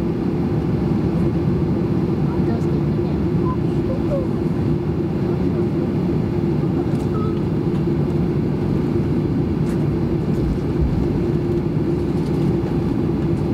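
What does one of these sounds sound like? Jet engines hum and rumble steadily inside an aircraft cabin as it taxis.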